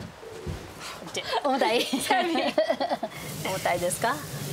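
A young woman laughs and talks with animation nearby.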